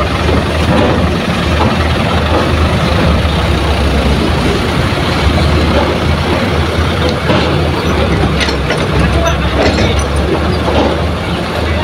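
Truck engines rumble and idle nearby.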